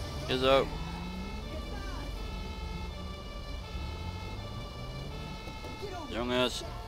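A fire engine's two-tone siren sounds nearby.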